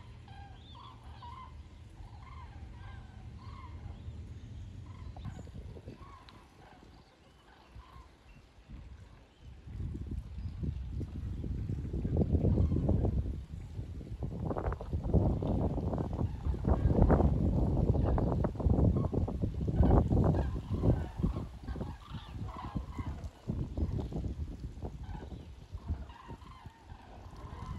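A flock of geese honks overhead in the distance.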